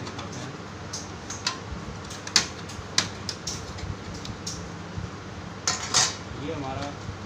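Plastic parts click and clatter as hands work on a printer.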